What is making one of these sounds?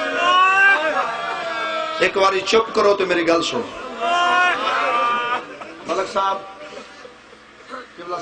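A young man chants loudly and with feeling through a microphone, in a reverberant space.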